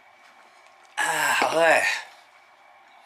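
A young woman lets out a loud, satisfied exclamation.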